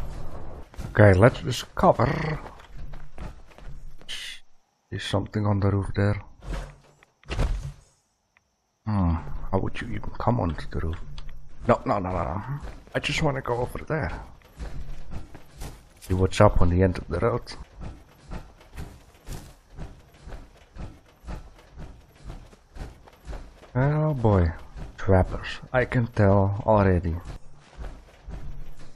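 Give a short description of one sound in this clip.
Heavy metal footsteps thud steadily on the ground.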